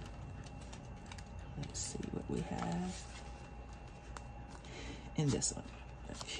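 Paper bills rustle and crinkle as they are handled.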